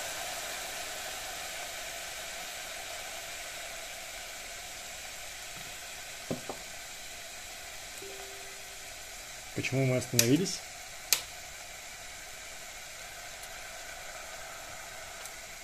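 Dry ice bubbles and hisses softly, slowly fading.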